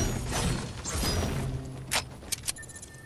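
A pickaxe strikes a tree trunk with a crack.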